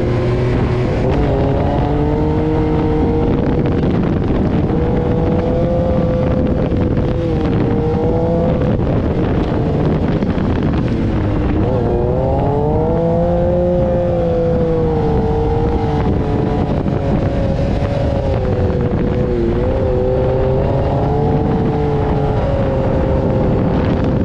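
A dune buggy engine roars loudly, rising and falling in pitch.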